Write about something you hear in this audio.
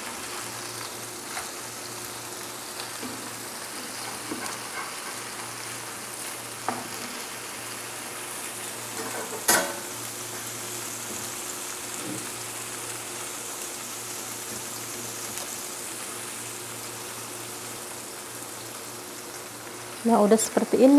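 Patties sizzle and crackle in hot oil in a frying pan.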